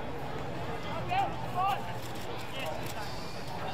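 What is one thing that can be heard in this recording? Men shout in the distance outdoors on an open field.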